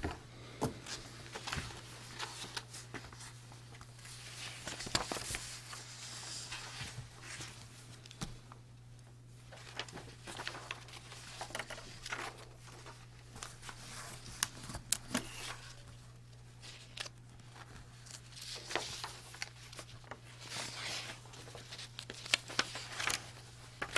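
Paper rustles and crinkles as pages are handled.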